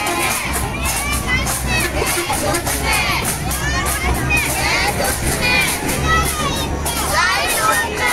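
A crowd of men and women chants and shouts outdoors.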